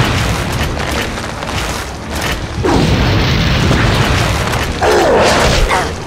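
An explosion booms loudly.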